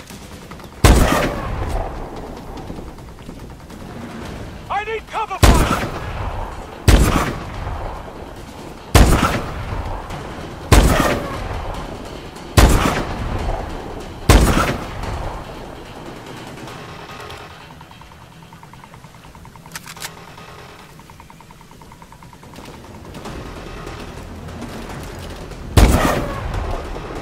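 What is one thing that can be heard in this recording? A sniper rifle fires loud, echoing shots one after another.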